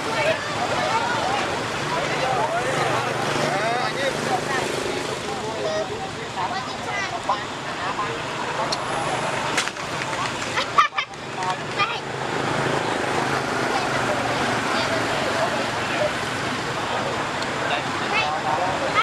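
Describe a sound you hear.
Motor vehicles drive past on a nearby road.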